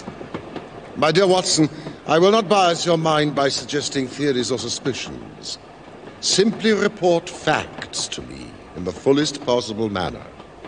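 An elderly man speaks calmly and firmly, close by.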